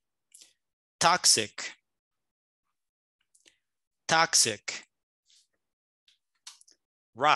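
A man speaks slowly and clearly over an online call, pronouncing words one at a time.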